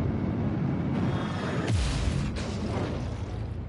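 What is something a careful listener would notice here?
A laser cannon fires with sharp bursts.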